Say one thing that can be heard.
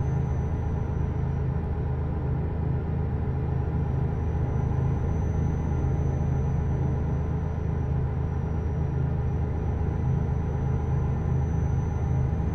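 A truck engine rumbles steadily and deeply.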